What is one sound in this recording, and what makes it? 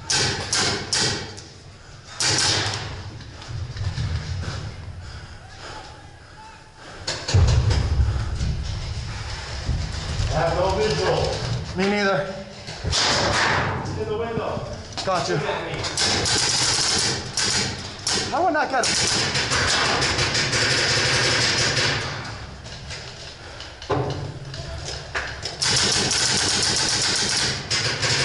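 A paintball marker fires sharp popping shots close by.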